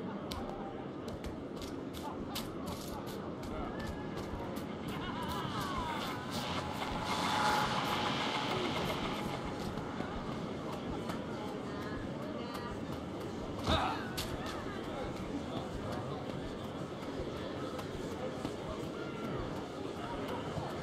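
Quick footsteps patter over grass and stone.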